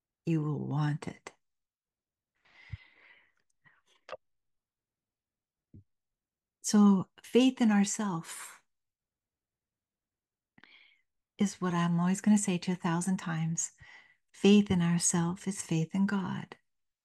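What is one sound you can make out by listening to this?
An elderly woman speaks calmly into a close microphone, with pauses.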